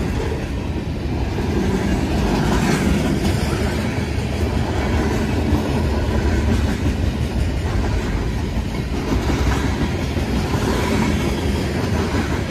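Train wheels clatter and squeal over the rails.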